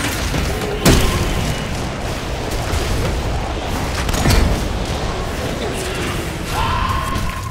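Fiery blasts and magic hits boom in a game fight.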